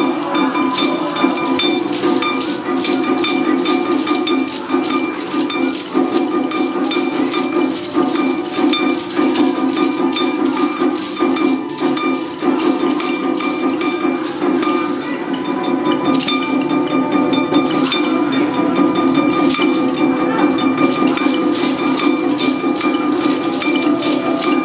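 Wooden hand clappers clack.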